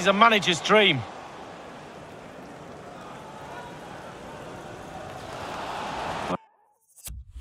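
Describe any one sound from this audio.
A stadium crowd murmurs steadily.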